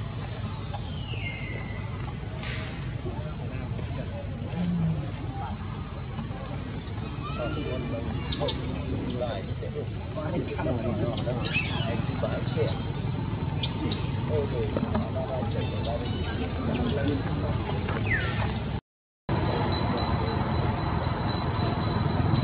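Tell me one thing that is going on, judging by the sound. Leaves rustle and branches creak as a monkey climbs in a tree.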